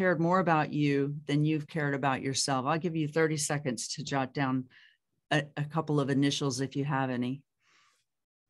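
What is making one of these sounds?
A middle-aged woman speaks calmly and close to the microphone, as if on an online call.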